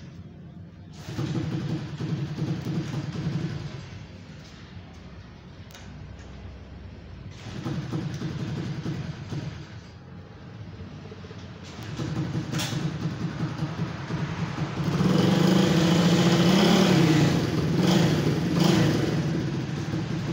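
A motorbike engine sputters, idles and revs loudly.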